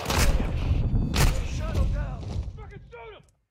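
Gunfire bursts loudly.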